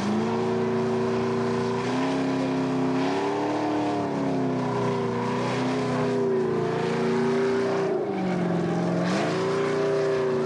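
A car engine revs hard at high speed, rising and falling.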